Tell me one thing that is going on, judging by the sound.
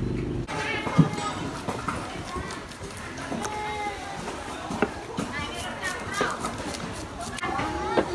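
A knife taps and scrapes on a cutting board.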